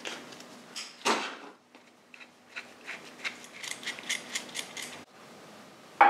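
Metal clamp parts click and clink as they are handled.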